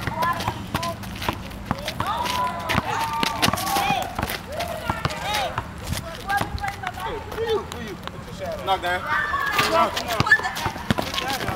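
A basketball bounces on asphalt with sharp thuds.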